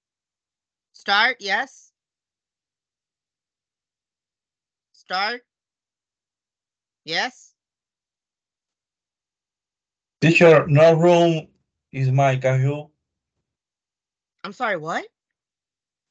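A young man speaks in short bursts over an online call.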